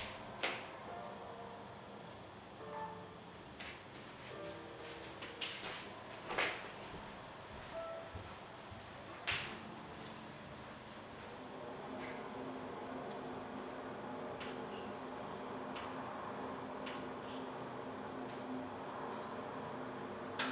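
Keys click on a laptop keyboard now and then.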